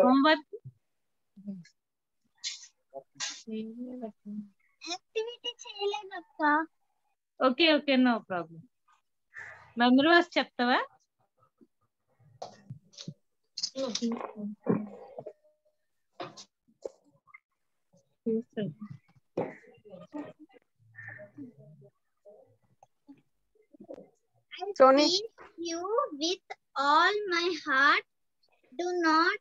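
A young girl talks with animation over an online call, close to the microphone.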